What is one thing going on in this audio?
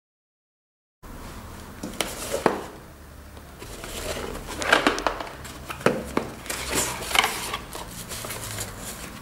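Hands handle and open a cardboard box.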